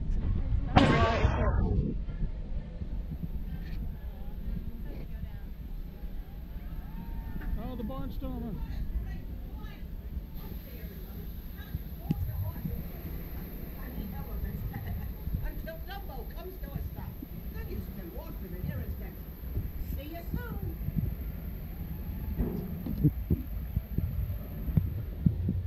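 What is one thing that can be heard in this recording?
Voices of a crowd chatter in the distance.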